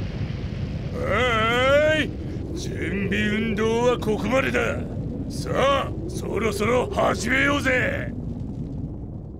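A man shouts and speaks with animation in a rough, excited voice.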